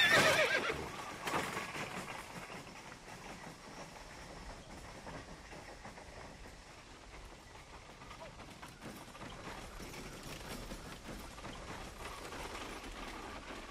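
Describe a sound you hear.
A horse-drawn cart rattles along a dirt road.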